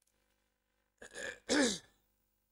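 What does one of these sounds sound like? A young man coughs close to a microphone.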